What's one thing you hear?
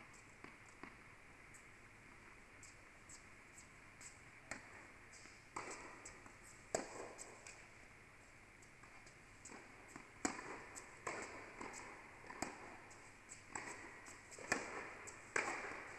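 Tennis balls are struck with rackets, with sharp pops echoing in a large indoor hall.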